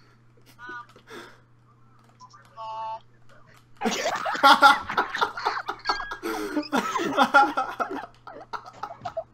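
A teenage boy laughs loudly over an online call.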